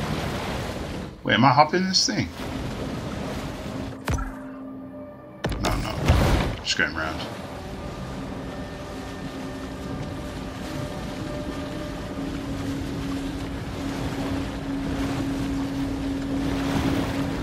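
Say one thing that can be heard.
Water splashes and swishes as a large shark swims through the sea.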